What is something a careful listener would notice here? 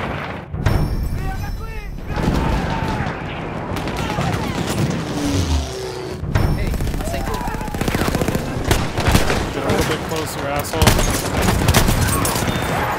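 Gunshots crack repeatedly nearby.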